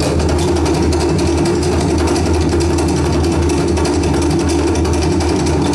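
A live band with a drum kit plays amplified Tahitian music.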